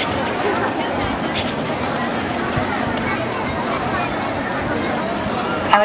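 Footsteps shuffle across stone paving.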